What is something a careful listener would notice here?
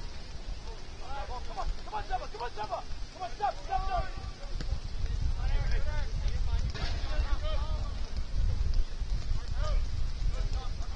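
Young men shout to each other across an open field in the distance.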